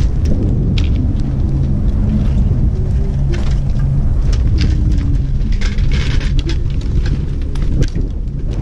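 Ski boots crunch and clack on snow and plastic matting.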